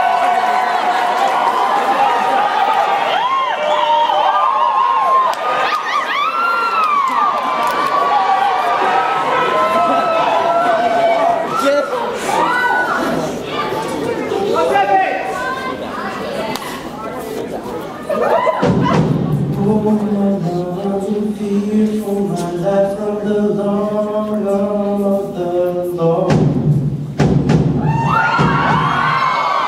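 A large male choir sings in harmony in a large echoing hall.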